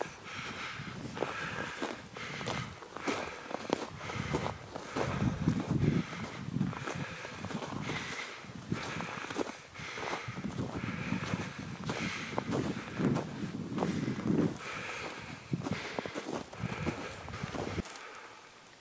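Footsteps crunch steadily through snow.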